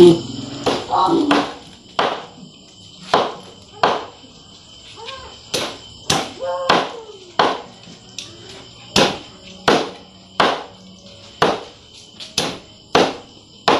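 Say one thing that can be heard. A knife chops food on a board with steady knocks.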